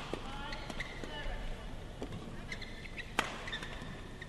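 A shuttlecock is struck sharply by rackets in a quick rally.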